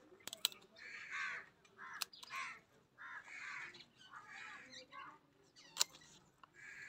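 Scissors snip through plant stems with sharp clicks.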